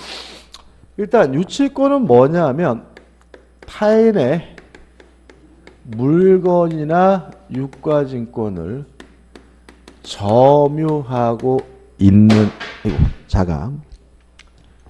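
A middle-aged man speaks with animation into a microphone, close by.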